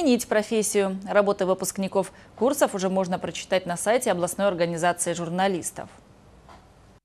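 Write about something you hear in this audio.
A middle-aged woman reads out loudly, heard through a microphone.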